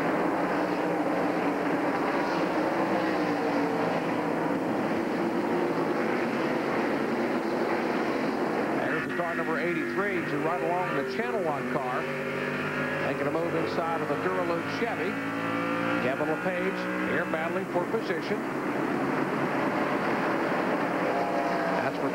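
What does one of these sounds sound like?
Race car engines roar loudly past.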